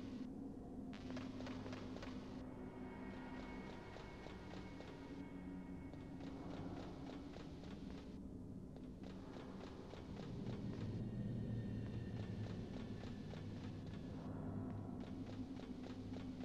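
Footsteps clang on metal stairs.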